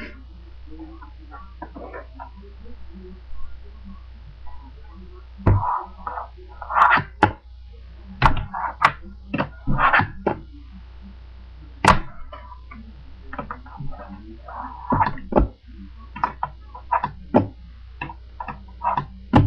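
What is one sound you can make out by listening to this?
A plastic case taps and clicks as it is handled.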